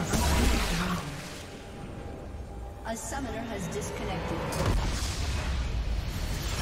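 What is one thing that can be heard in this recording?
Blades slash and clash in a fast fight.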